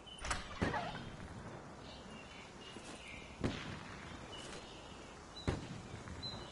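A rifle clicks and rattles as it is raised to aim.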